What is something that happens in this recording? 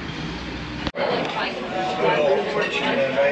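Several men and women chat at nearby tables in a crowded room.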